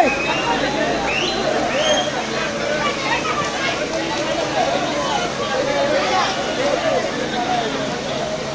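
A crowd of men and women chatters and calls out nearby, outdoors.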